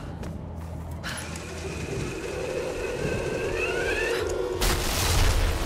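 A metal pulley whirs and squeals along a taut rope.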